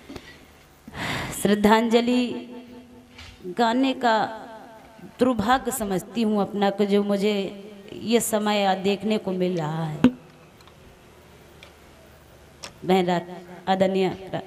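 A young woman sings loudly through a microphone and loudspeakers.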